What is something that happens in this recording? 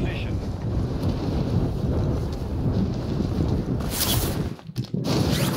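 Wind rushes loudly during a parachute descent.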